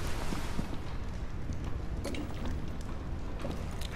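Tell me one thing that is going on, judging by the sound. A fire crackles in a fireplace.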